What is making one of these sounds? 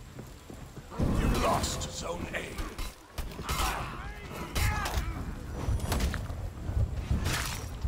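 Steel blades clash and strike in a fight.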